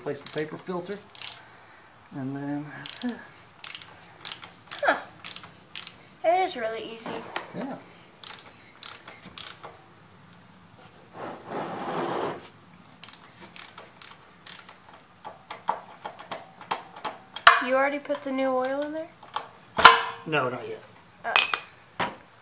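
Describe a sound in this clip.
A wrench clicks and knocks against metal.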